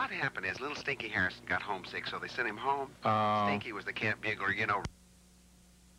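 A man talks loudly close by.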